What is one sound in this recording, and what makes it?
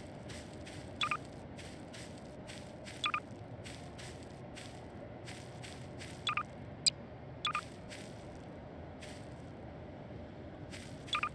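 A sci-fi tool gives short electronic chirps as it zaps and places objects.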